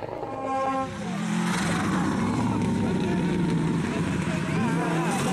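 A rally car engine revs hard as the car passes close by.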